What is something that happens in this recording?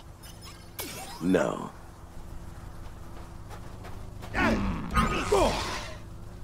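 A lightsaber hums steadily.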